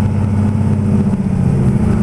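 A truck engine hums nearby.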